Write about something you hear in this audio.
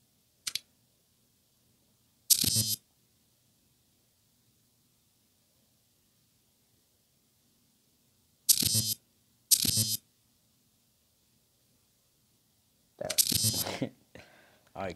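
Short electronic menu sounds swoosh and chime now and then.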